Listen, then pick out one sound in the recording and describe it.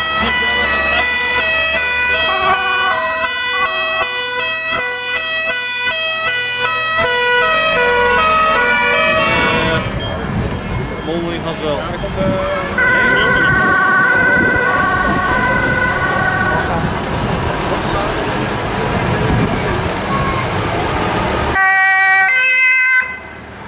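A fire engine's two-tone siren wails close by.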